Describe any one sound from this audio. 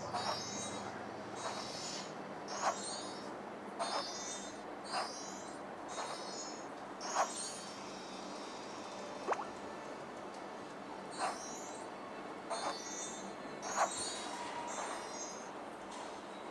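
Short sparkling chimes ring out again and again from a coloring game.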